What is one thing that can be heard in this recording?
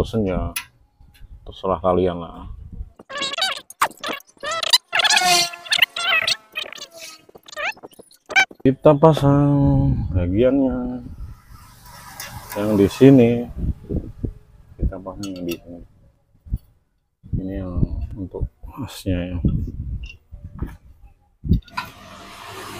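Metal parts click and clink as a man adjusts them.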